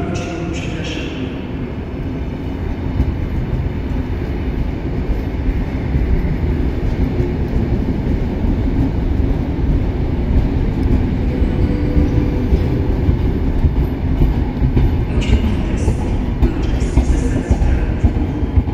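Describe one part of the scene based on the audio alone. A train engine hums steadily while standing.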